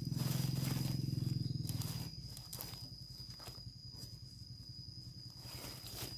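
A knife chops and slices through crisp leaves.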